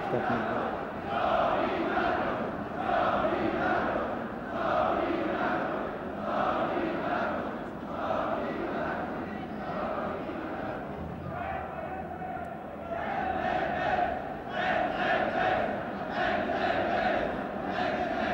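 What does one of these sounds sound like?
A large crowd chants in rhythm outdoors.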